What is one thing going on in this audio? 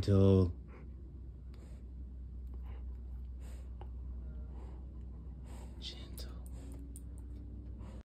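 A dog chews on a tennis ball.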